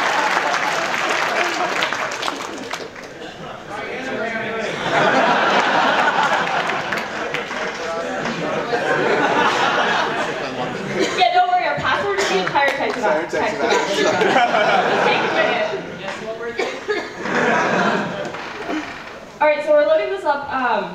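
A crowd chatters and cheers loudly in a large echoing hall.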